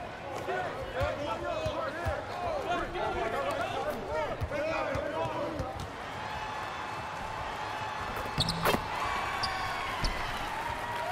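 A basketball bounces with dull thumps.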